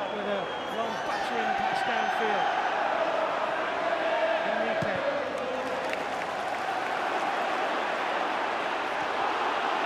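A large stadium crowd roars, swelling midway.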